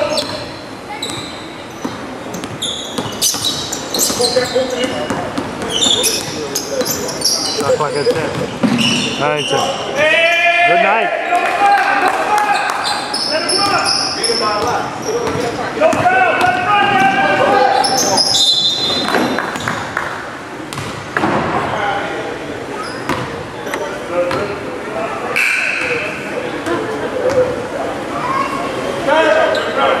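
Men call out and talk loudly in an echoing gym.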